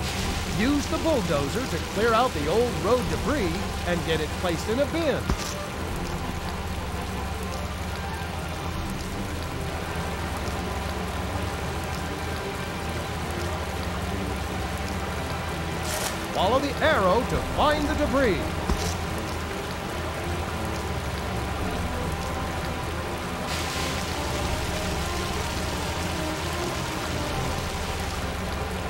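A bulldozer engine rumbles steadily.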